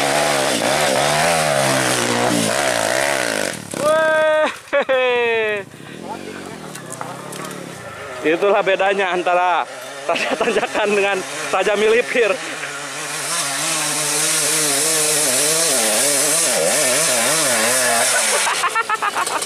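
A dirt bike engine revs hard and whines up and down nearby.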